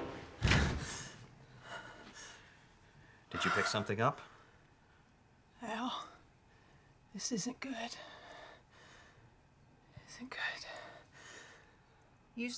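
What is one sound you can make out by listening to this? An elderly man whispers softly close by.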